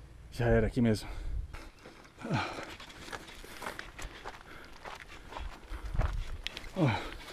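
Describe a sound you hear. A man close by makes short voiced sounds.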